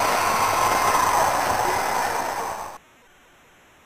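A crowd cheers loudly and then falls silent.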